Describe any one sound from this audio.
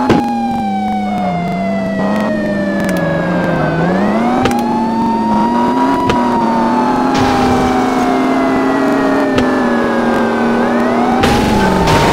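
A siren wails, slowly falling and then sweeping up in pitch.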